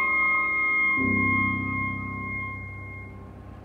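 A saxophone holds a low note.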